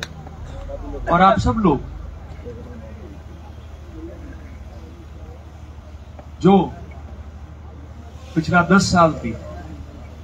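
A man speaks loudly into a microphone through loudspeakers, in short bursts outdoors.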